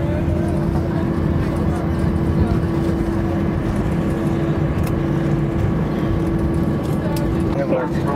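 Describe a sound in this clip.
An airliner rumbles as it rolls along a runway.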